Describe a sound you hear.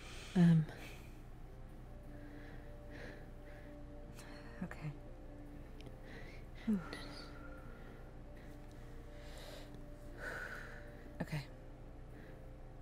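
A young woman speaks softly into a microphone.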